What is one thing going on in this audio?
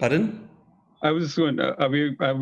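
An older man speaks over an online call.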